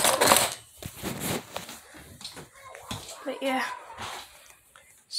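Something rustles and bumps as a phone is handled up close.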